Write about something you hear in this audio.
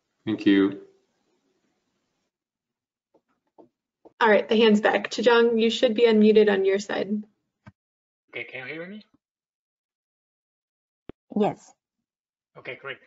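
A young woman speaks calmly over an online call, pausing between phrases.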